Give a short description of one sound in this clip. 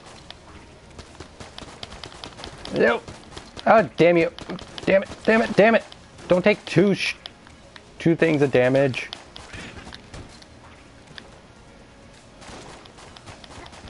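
Video game gunshots fire in quick bursts.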